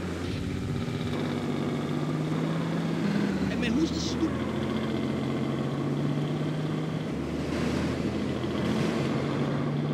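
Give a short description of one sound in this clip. A car engine hums steadily as a car drives along.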